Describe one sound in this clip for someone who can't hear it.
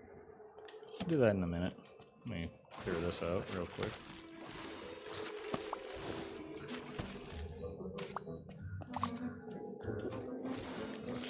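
Magical sparkling chimes ring out in bursts.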